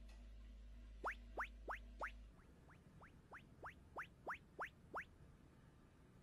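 Small paws patter softly on a wooden floor.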